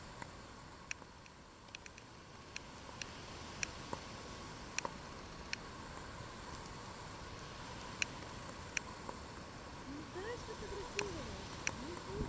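A peacock rattles its fanned tail feathers close by.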